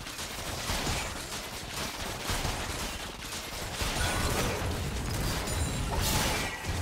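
Fantasy spell effects and weapon hits clash in a busy fight.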